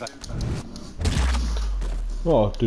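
A heavy punch lands with a thud.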